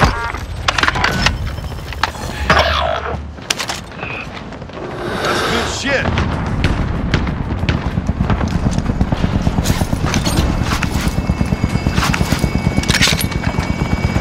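Gunshots crack in short bursts.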